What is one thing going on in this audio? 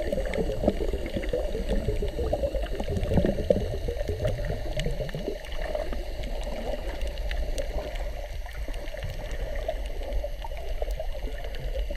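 Water swirls and bubbles with a muffled underwater rumble.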